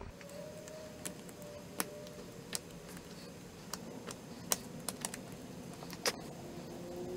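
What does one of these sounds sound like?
A metal pick scrapes and clicks against a small brass part.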